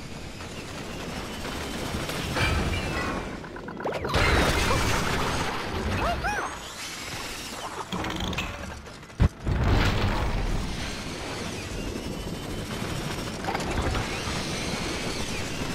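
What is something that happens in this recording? A magic paint stream sprays with a fizzing hiss.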